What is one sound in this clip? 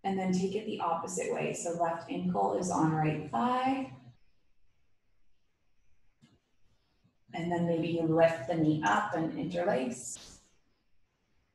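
A woman speaks calmly and clearly, as if giving instructions, close to a microphone.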